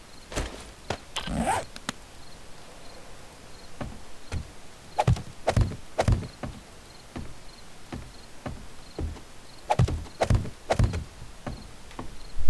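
Wooden ladder pieces knock into place with short thuds.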